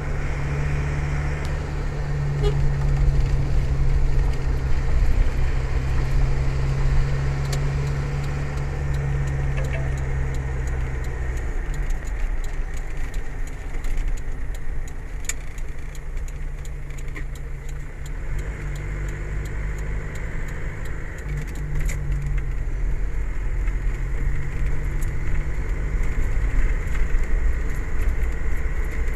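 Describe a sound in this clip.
A car engine hums steadily from inside the car as it drives, rising and falling in pitch.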